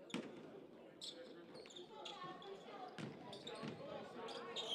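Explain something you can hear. Basketball shoes squeak sharply on a wooden court in a large echoing gym.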